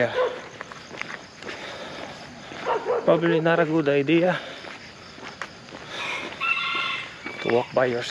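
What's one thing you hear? A man speaks close by, his voice rising and falling.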